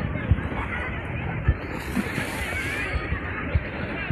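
Small waves lap against the pool's edge.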